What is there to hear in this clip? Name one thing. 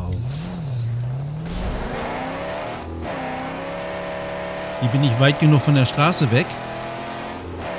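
A car engine rumbles and revs steadily while driving.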